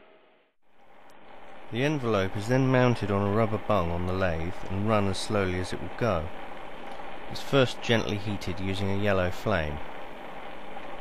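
A gas torch flame roars steadily.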